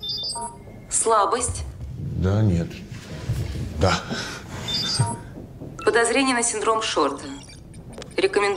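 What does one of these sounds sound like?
A man answers in a relaxed, slightly amused voice.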